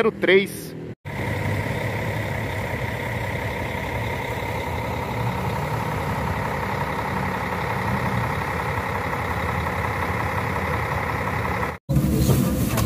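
A bus engine idles with a steady hum.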